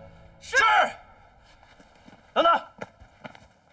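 A man shouts commands loudly and sharply.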